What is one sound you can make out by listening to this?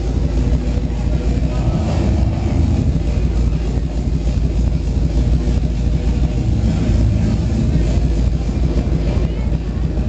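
Loud electronic dance music with a heavy bass beat booms through large speakers.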